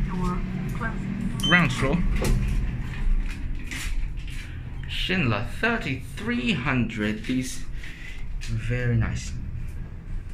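A lift button clicks when pressed.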